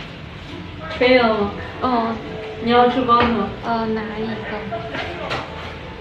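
A young woman speaks lively and close by.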